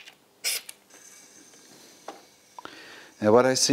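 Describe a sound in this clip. Metal tools click and clank against an engine.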